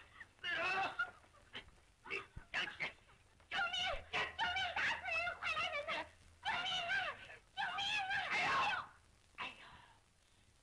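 A crowd of men shout and clamour excitedly.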